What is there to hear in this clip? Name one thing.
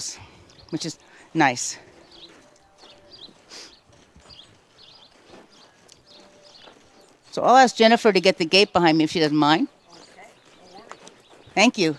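A horse's hooves clop on dirt.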